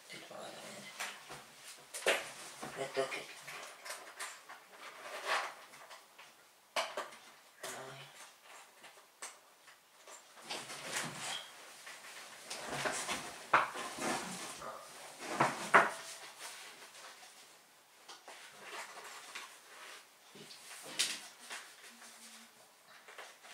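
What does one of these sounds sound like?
Cloth rustles and shuffles close by.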